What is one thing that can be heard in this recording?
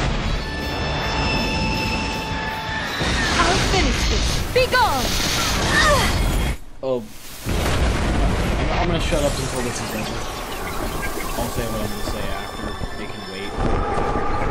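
Energy blasts whoosh and crackle loudly.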